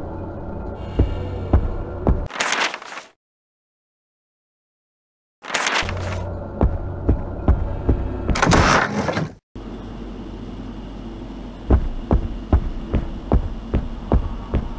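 Footsteps tap on a hard tiled floor in an echoing corridor.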